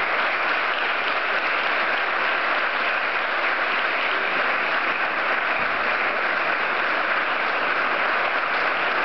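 A crowd applauds steadily in a room.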